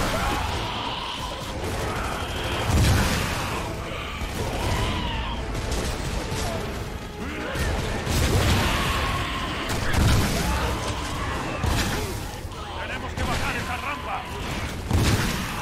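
Gunfire bursts loudly and echoes.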